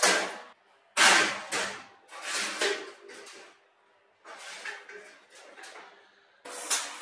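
A metal frame knocks and clatters as it is shifted.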